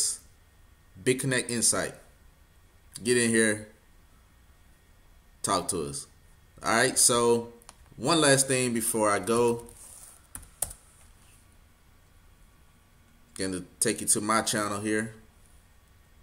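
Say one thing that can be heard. A man talks calmly into a microphone, close by, in short phrases.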